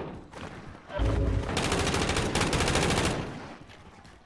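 Heavy blows thud in a close scuffle.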